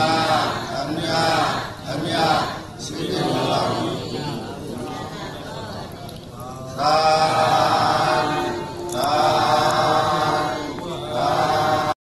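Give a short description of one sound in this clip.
A crowd of men and women chant together in unison.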